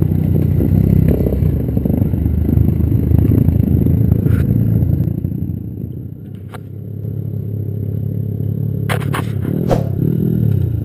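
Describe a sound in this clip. A motorcycle engine rumbles close by, rising and falling as it revs.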